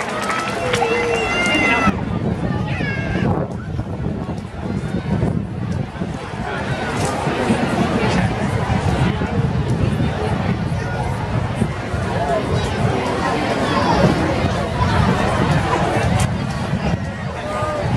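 A large marching band plays brass and drums outdoors.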